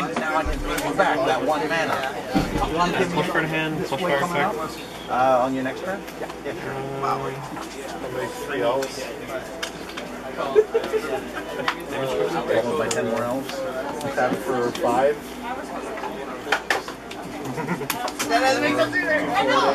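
Playing cards are shuffled by hand with soft riffling and slapping.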